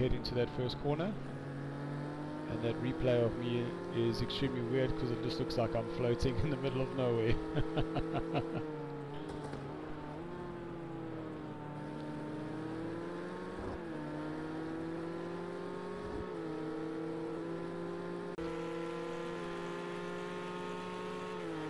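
A racing car engine roars, rising and falling in pitch as the driver shifts gears.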